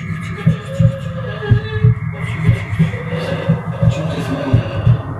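Music with a steady, thumping beat plays from a television.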